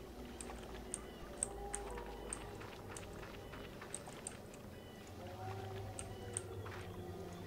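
Footsteps tap lightly on the ground.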